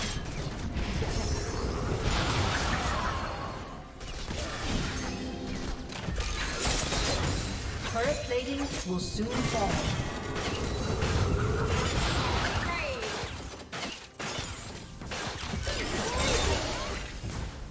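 Magic blasts and combat sound effects crackle and boom in a busy fight.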